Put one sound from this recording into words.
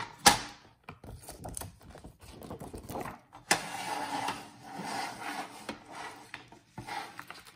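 A plastic cutter arm clicks and clacks as it is lifted and set down.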